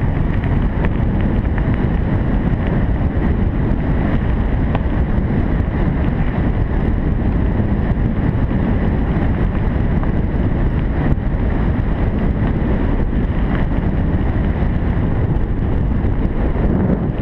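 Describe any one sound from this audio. Wind buffets the microphone with a steady low rumble.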